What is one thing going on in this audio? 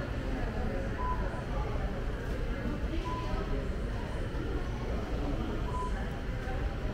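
A self-checkout machine beeps briefly.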